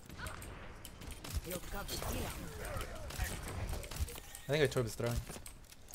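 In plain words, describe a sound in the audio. A rifle fires a burst of shots.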